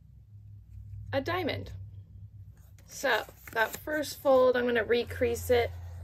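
Fingers press and crease a fold in paper.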